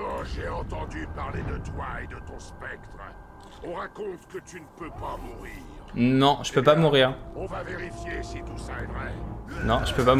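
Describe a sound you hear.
A monstrous warrior growls in a deep voice.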